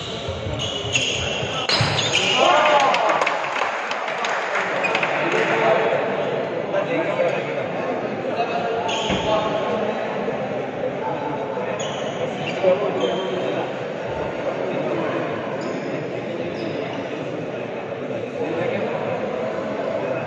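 Young men chatter and call out in a large echoing hall.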